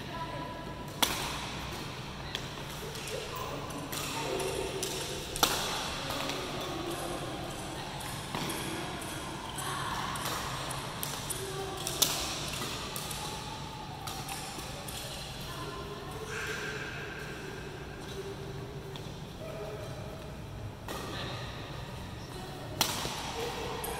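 Badminton rackets strike a shuttlecock with sharp pops, echoing in a large hall.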